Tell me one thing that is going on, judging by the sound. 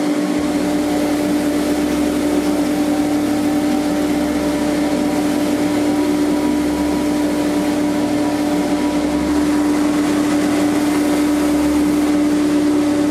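A grinding machine hums steadily.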